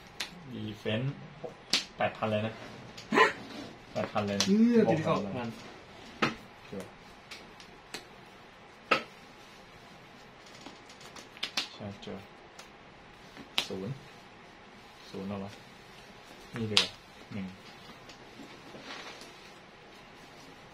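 Playing cards riffle and rustle as they are shuffled in hand.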